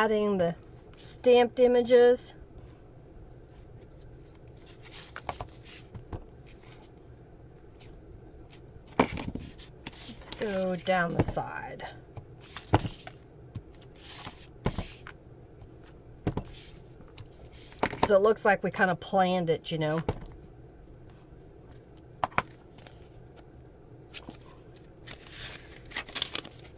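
Paper rustles and taps on a table.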